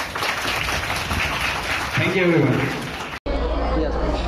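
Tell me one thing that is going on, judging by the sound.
A man speaks into a microphone to a crowd.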